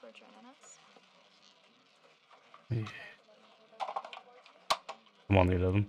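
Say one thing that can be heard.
A roulette ball rolls and rattles around a spinning wheel.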